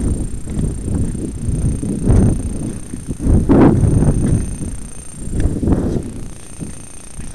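A vehicle rumbles and bumps over a rough stony track.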